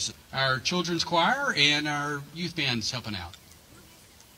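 A middle-aged man speaks calmly through a loudspeaker outdoors.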